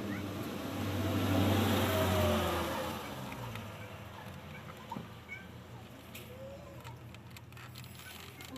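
Small engine parts click and rattle under a man's fingers.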